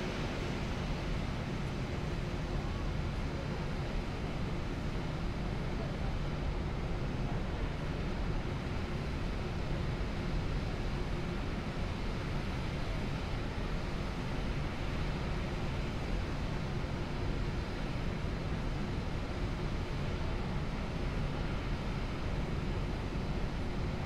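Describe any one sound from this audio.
Jet engines roar steadily as an airliner rolls down a runway.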